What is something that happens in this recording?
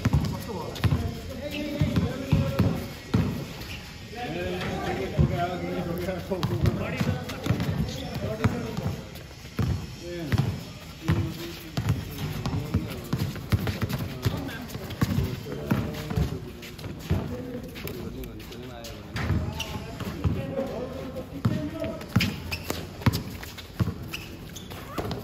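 Sneakers scuff and squeak on the court.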